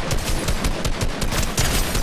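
A rifle fires a sharp shot.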